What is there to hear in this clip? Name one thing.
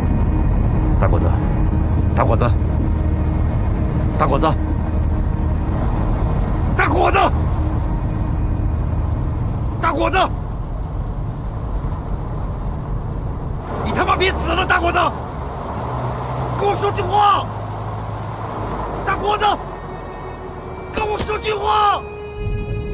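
A man calls out urgently, close by.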